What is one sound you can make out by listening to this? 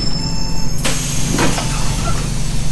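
A bus door hisses open.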